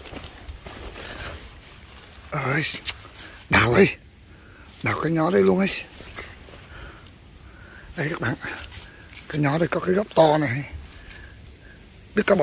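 Dry grass and twigs rustle as a hand pushes through them.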